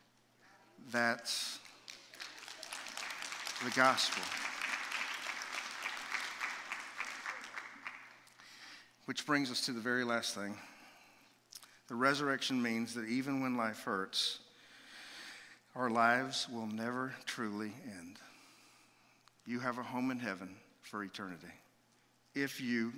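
A man speaks with animation through a microphone in a large room.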